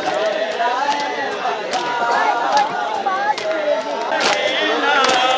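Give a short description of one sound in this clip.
Men beat their chests with hands in a steady rhythm.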